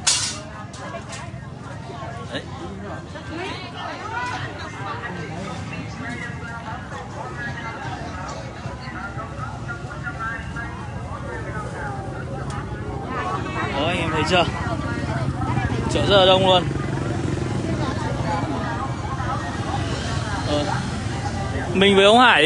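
Many voices chatter in a busy outdoor market.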